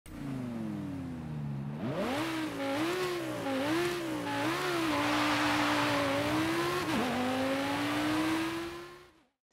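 A sports car engine roars loudly, revving up and down and shifting gears as the car accelerates.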